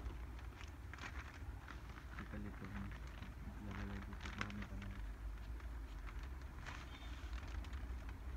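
A plastic wrapper crinkles and rustles as it is handled.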